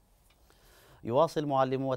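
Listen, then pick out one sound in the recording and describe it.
A young man speaks calmly and clearly into a microphone.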